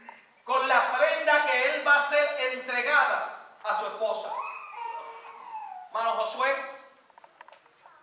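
A middle-aged man preaches with animation into a microphone in an echoing hall.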